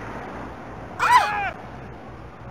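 People scream in fright nearby.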